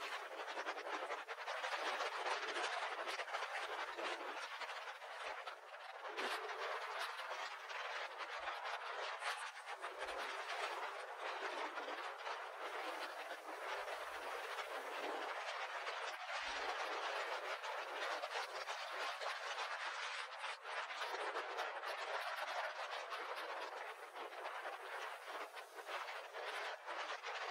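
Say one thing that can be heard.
Choppy waves splash and crash against rocks close by.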